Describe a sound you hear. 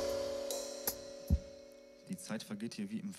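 A piano chord rings out and fades.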